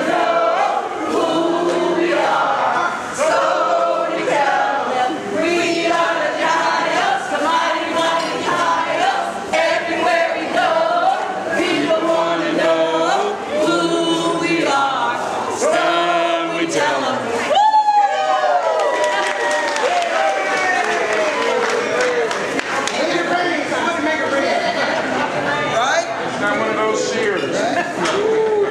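Upbeat music with singing plays loudly over loudspeakers in a large hall.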